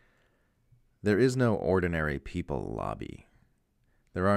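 A man speaks into a microphone in a firm, measured voice.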